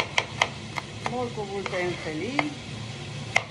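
A woman speaks briefly and calmly, close by.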